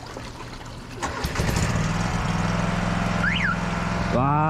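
A drain cleaning machine hums steadily.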